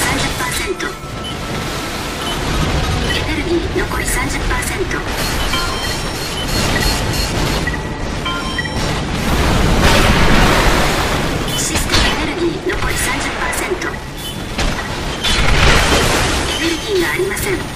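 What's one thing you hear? Heavy machine thrusters roar and whoosh.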